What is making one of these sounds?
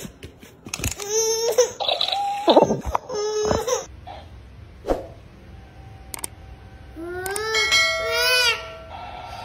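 A baby cries loudly.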